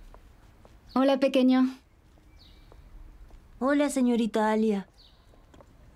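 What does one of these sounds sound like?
A boy speaks cheerfully nearby.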